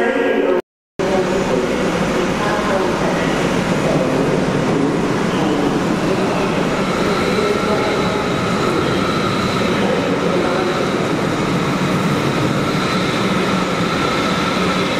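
A train approaches and rolls past close by with a loud, steady rumble.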